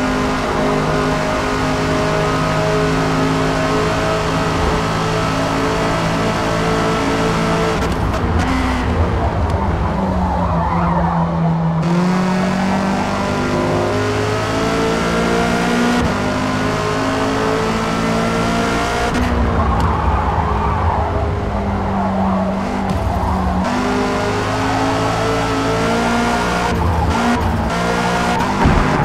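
A racing car engine roars at high revs, its pitch dropping and rising as gears shift.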